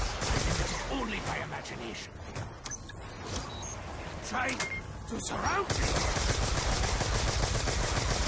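Zombies growl and shriek nearby.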